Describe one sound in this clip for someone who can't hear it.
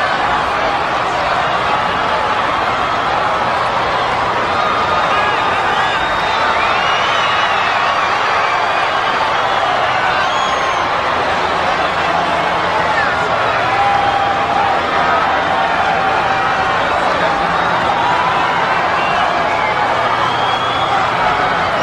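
Many people in a crowd scream and whistle shrilly.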